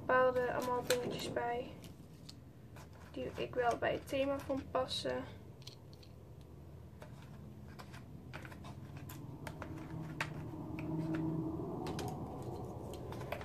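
Small plastic and wooden pieces click and rattle as they are handled.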